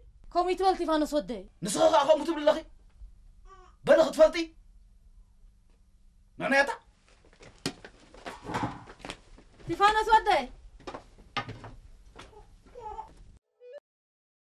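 An elderly woman speaks with strong emotion, close by.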